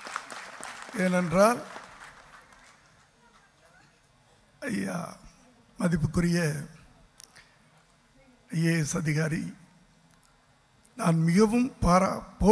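An elderly man speaks slowly and firmly into a microphone over loudspeakers, with pauses between phrases.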